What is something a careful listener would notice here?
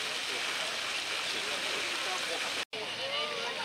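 A fountain splashes steadily.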